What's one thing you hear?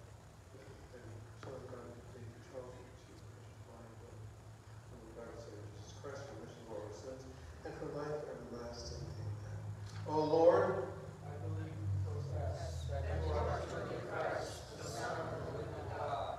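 A man recites prayers in a low voice.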